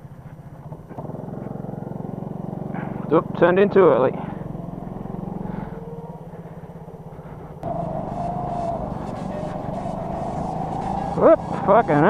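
Other go-kart engines buzz past nearby.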